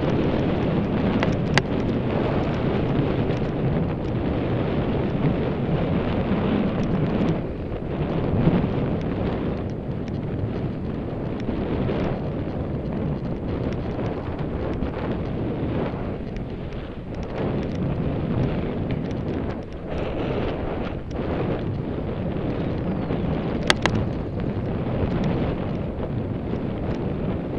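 Wind rushes and buffets loudly over a microphone outdoors.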